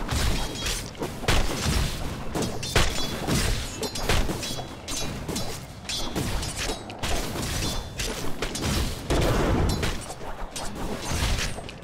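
Spell blasts and weapon clashes crackle and boom in a rapid, chaotic fight.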